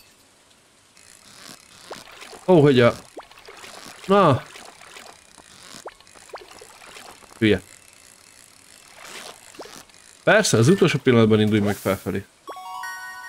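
A fishing reel whirs as a line is reeled in.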